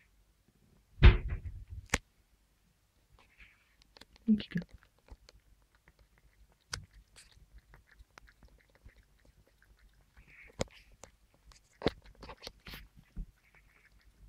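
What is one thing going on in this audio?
A plastic bowl knocks and clicks as a cat drinks.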